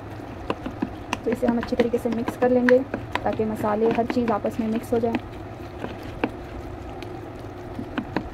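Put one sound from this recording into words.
A hand squishes and mixes a moist food mixture in a bowl.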